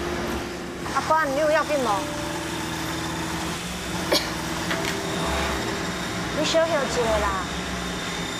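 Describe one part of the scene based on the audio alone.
A young woman speaks with concern nearby.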